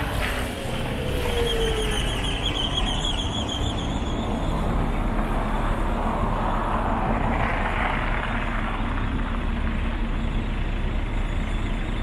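A bus engine rumbles close by and pulls away.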